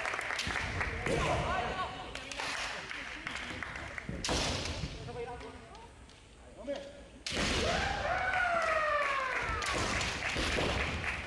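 Young men shout sharply in a large echoing hall.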